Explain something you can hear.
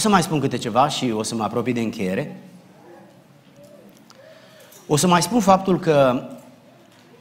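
A middle-aged man speaks calmly and deliberately into a microphone, with pauses.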